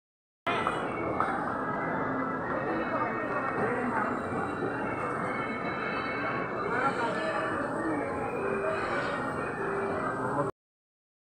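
A crowd of people chatters in a busy, echoing hall.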